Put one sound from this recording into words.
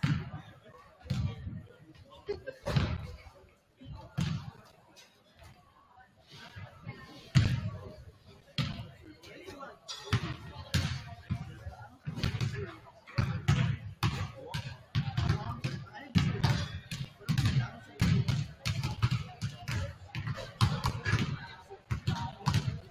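A basketball bounces on a hard wooden floor in a large echoing gym.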